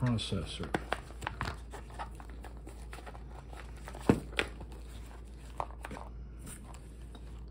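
A zippered case rustles and clicks as hands handle it.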